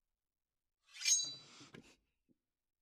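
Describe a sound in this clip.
A sword blade rings sharply as it is drawn.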